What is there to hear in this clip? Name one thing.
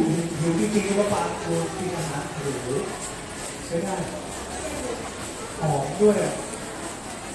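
A young woman speaks with animation into a microphone over a loudspeaker.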